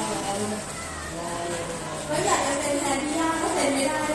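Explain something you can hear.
A woman speaks through a microphone over loudspeakers.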